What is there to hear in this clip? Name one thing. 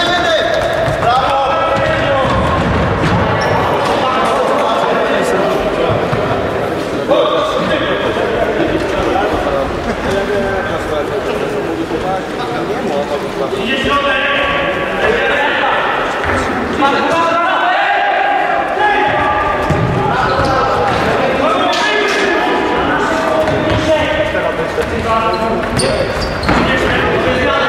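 Players' shoes squeak on a wooden floor.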